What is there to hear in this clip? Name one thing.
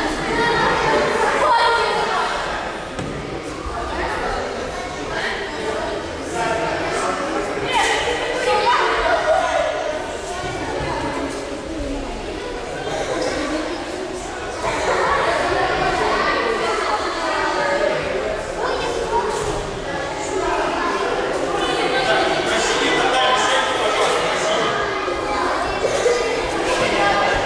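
Children chatter and talk in a large echoing hall.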